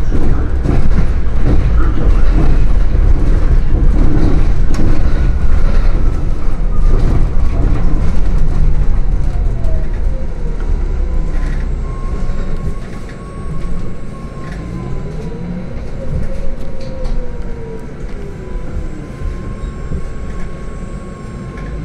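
A hybrid city bus drives along, heard from inside.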